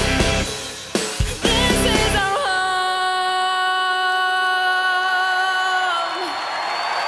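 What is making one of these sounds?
A young woman sings a long held note into a microphone, backed by loud music.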